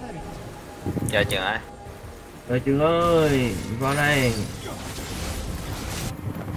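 Magic spells crackle and boom in a game fight.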